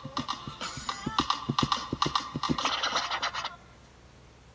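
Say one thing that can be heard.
Fingers tap rapidly on a touchscreen.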